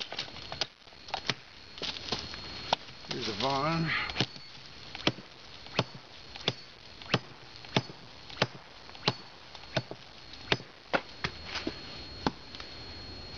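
A machete chops through brush with sharp, regular whacks.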